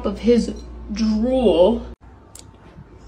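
A cat meows loudly and insistently.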